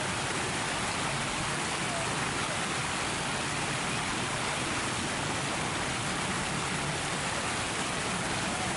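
Fountain jets splash steadily into a pool outdoors.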